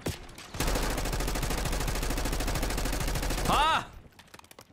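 Rapid gunfire rattles in a fast, steady burst.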